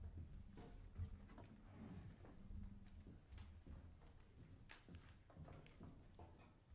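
A heavy case scrapes and bumps across a wooden stage floor.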